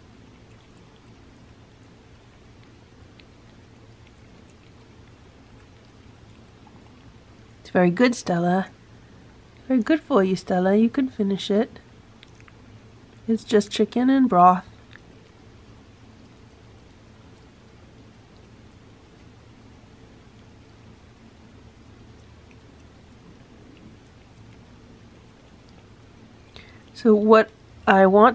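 A cat laps food softly from a plate.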